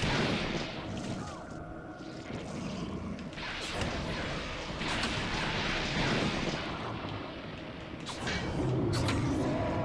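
Blows land with heavy thuds in a fight.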